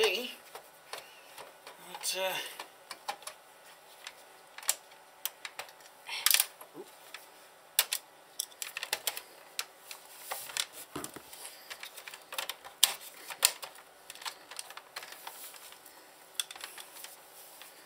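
Plastic casing clicks and knocks as hands handle it on a table.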